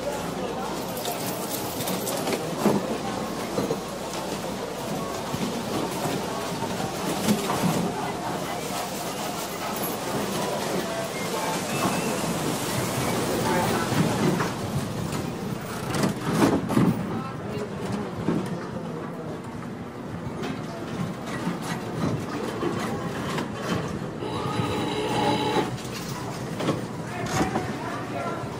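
A crowd murmurs in a large busy hall.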